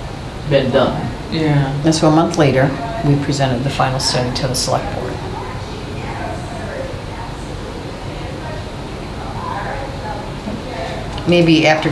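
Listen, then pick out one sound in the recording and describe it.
A man speaks calmly, heard through a room microphone.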